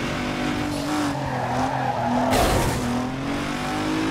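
A car scrapes against a wall.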